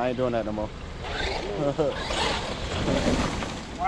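Wood chips scatter and crunch under a toy car's tyres.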